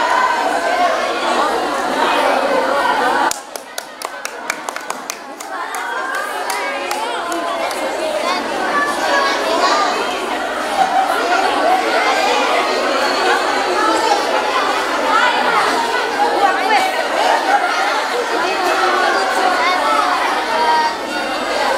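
A crowd of young people chatter and talk at once nearby.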